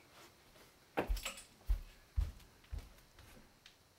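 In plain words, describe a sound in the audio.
Footsteps thud.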